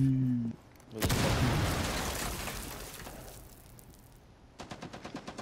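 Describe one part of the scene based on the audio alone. A smoke grenade bursts and hisses loudly, then fades.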